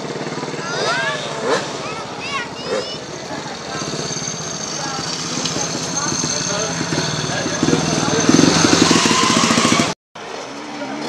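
A motorcycle engine idles and revs up loudly.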